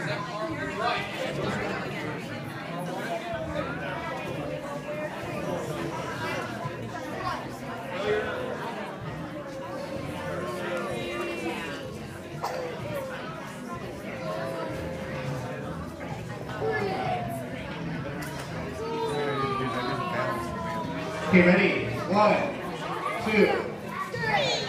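A crowd of men, women and children chatters throughout in an echoing room.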